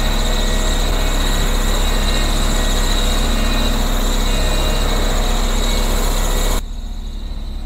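A road roller's diesel engine rumbles loudly close by.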